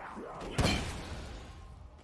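A blast booms and crackles.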